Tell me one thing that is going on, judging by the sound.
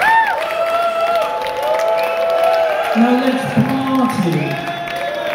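A rock band plays live through loud speakers.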